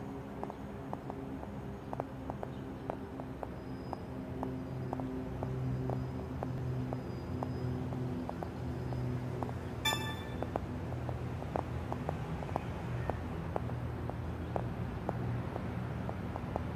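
Footsteps tap steadily on pavement.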